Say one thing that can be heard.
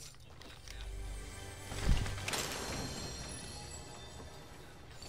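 A treasure chest opens with a shimmering chime.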